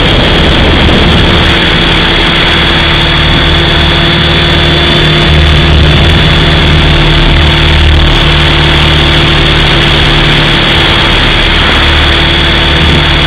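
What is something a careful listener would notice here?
Drone propellers whine steadily and close by.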